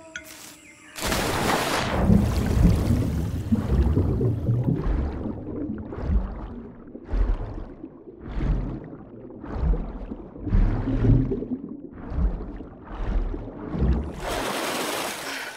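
Water churns and splashes in rhythmic bursts as a swimmer strokes underwater.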